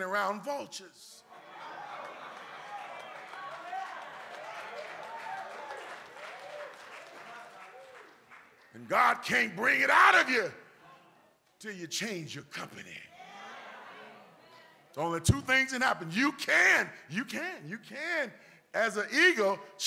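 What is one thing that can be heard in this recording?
A man preaches passionately through a microphone in a large echoing hall, his voice rising and falling.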